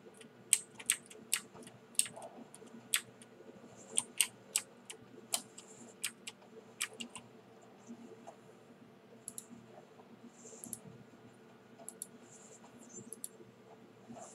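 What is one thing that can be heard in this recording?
Sharp magic impacts crack and burst again and again.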